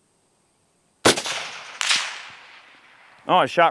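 A rifle fires two loud shots that echo outdoors.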